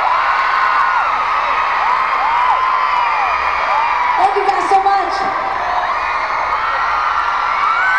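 A singer sings through loudspeakers.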